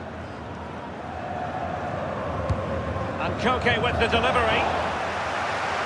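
A stadium crowd roars louder as a goalmouth chance builds.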